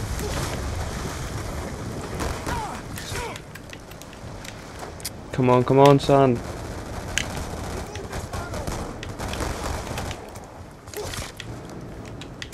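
Pistol shots fire in a video game.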